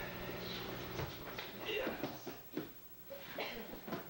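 A body thuds onto a padded floor.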